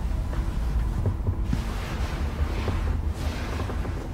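Bed sheets rustle softly under a hand.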